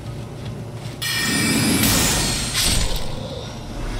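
A magic spell bursts with a bright whoosh.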